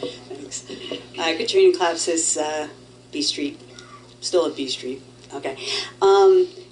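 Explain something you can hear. A woman speaks into a microphone in an echoing room.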